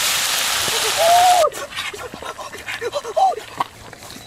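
A young man cries out and groans nearby.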